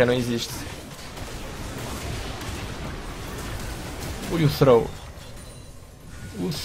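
Magic blasts and whooshes ring out from a video game.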